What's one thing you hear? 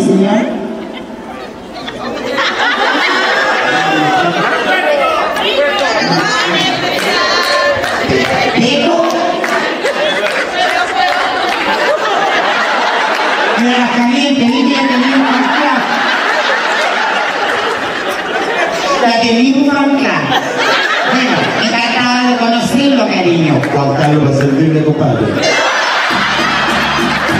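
An audience murmurs and chatters.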